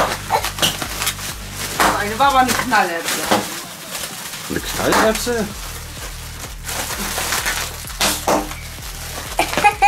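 Plastic wrap crinkles and rustles in small hands.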